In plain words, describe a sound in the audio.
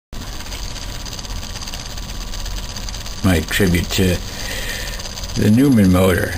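A small electric motor spins with a faint steady whir.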